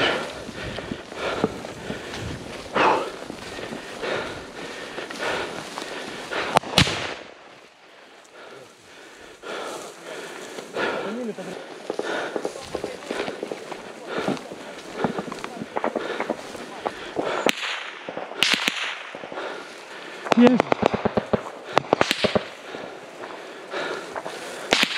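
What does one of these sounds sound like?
Dry wheat stalks rustle and swish as someone walks through a field.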